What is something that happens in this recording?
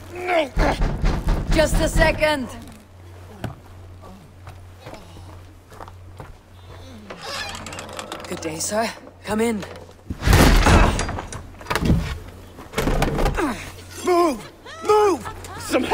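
A woman speaks urgently.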